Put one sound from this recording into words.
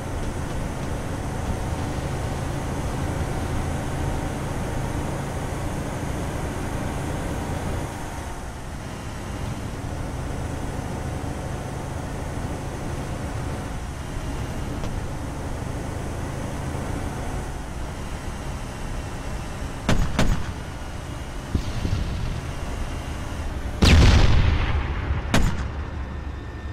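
A heavy armoured vehicle's engine rumbles steadily as it drives along.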